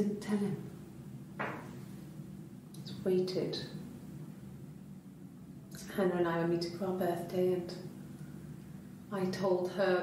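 A young woman speaks quietly and hesitantly.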